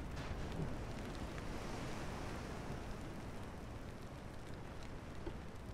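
Waves of the open sea rush and churn steadily.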